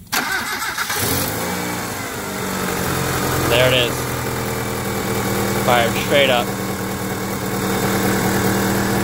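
A car engine idles steadily up close.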